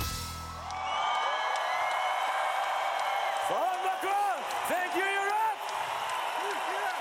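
A man sings loudly.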